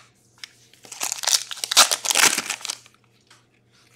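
Trading cards rustle and slide against each other as they are shuffled.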